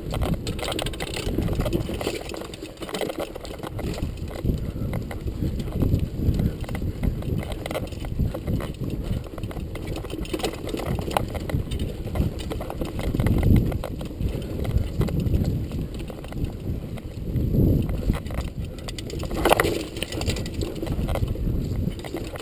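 Wind rumbles against a microphone.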